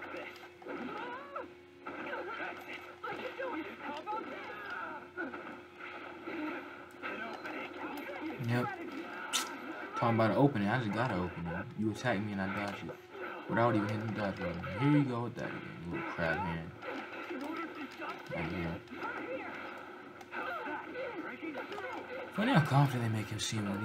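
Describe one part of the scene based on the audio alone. Punches and blasts from a fighting video game play through a television speaker.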